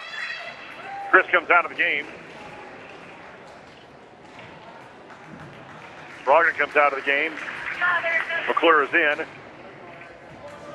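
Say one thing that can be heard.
A crowd murmurs softly in a large echoing gym.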